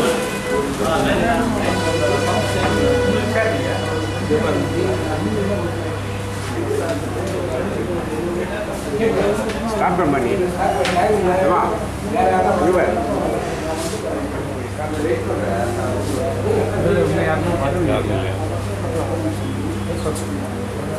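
A group of men talk and murmur indoors.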